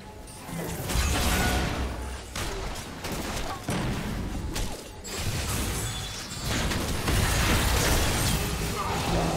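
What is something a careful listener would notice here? Magic spells crackle and boom with thudding hits in a fast video game fight.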